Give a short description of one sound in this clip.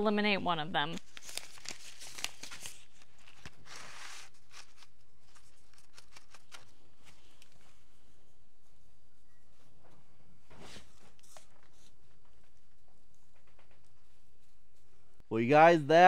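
Hands scoop and pat loose soil.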